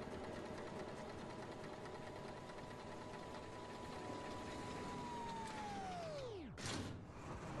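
A large machine hums steadily, then winds down to a stop.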